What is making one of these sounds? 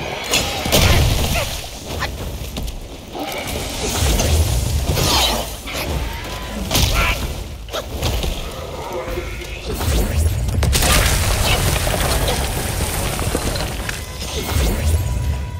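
A sword clashes and slashes in quick bursts.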